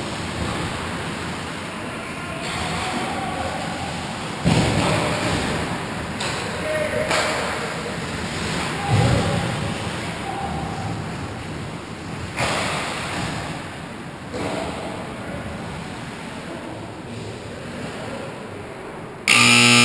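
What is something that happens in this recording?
Skate blades scrape and carve across ice in a large echoing rink.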